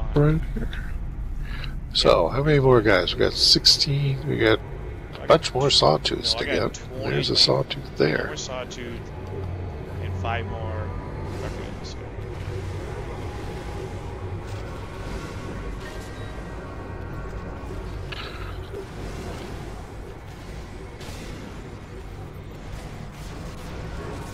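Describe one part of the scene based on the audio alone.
Game combat effects whoosh and crackle.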